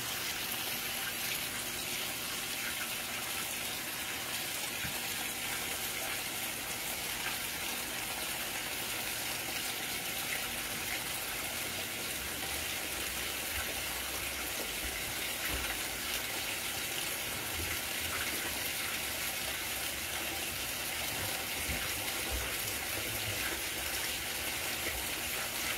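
A washing machine hums steadily as it agitates.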